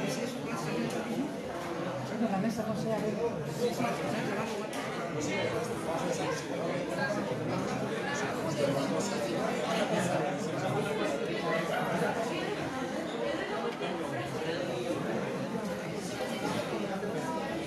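Several men talk at once in an echoing room.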